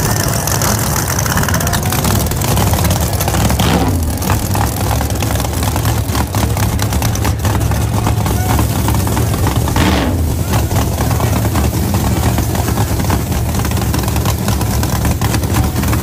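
A powerful car engine idles with a loud, deep, rough rumble.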